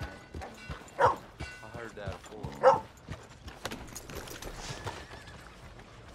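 Horse hooves clop on a dirt road.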